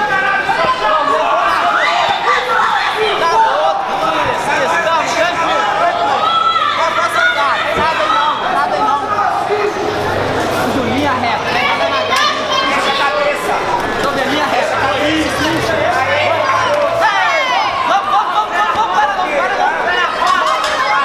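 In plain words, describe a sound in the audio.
A crowd of men and women shouts and cheers all around, outdoors.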